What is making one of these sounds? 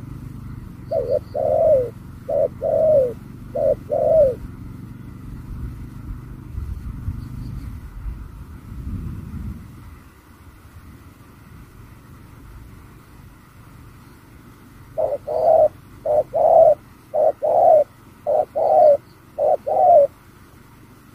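Doves coo in low, repeated hoots close by.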